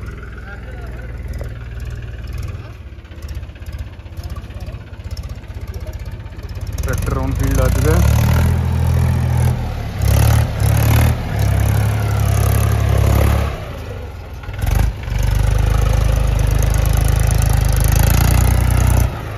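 A tractor engine rumbles nearby.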